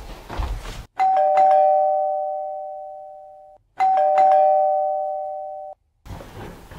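A doorbell chimes twice.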